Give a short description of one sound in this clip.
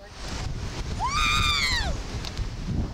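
A young girl screams loudly.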